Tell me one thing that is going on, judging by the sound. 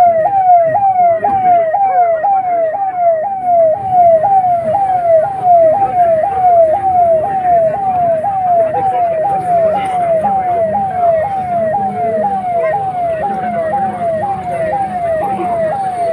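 An ambulance siren wails steadily in a fast, repeating rise and fall.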